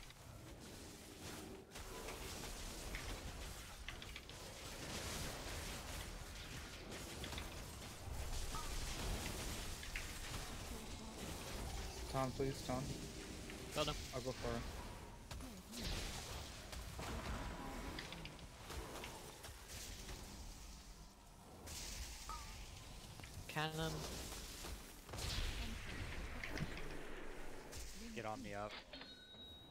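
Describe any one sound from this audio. Spell effects whoosh, crackle and clash in a fast fantasy battle.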